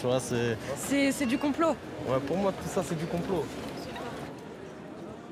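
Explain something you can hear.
A crowd of people chatters and murmurs on a busy street.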